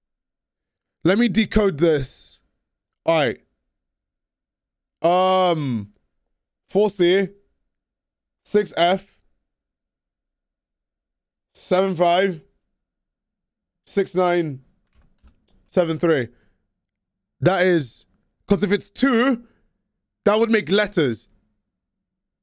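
A young man speaks with animation into a close microphone, in short bursts with pauses.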